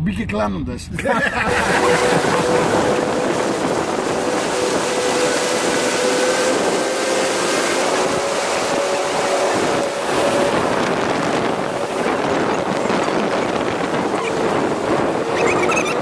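Wind roars past loudly outdoors.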